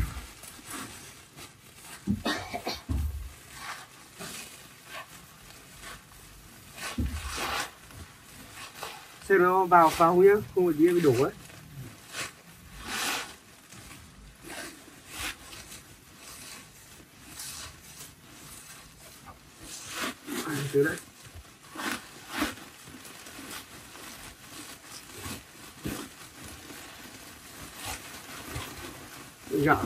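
Plastic sacks rustle and crinkle as they are handled.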